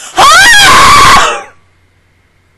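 A young woman screams loudly and excitedly into a close microphone.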